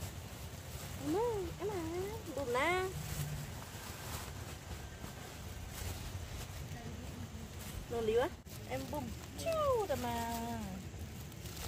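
A boy speaks briefly nearby in a high voice.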